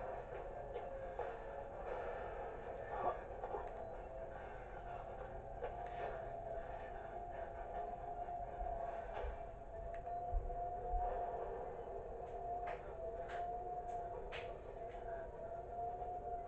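A video game's eerie soundtrack plays with a steady droning tone.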